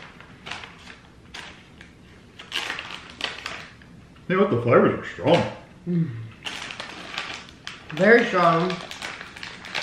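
Plastic wrapping crinkles as it is torn open.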